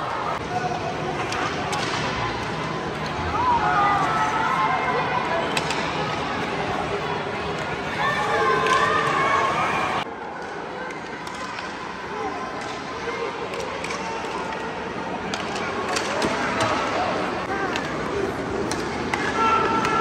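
A crowd of spectators chatters and cheers in a large echoing indoor hall.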